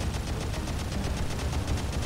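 An explosion booms far off in a video game.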